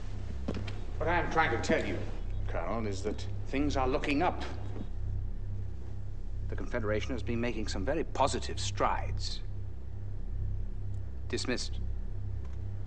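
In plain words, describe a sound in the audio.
An elderly man speaks calmly and gravely, close by.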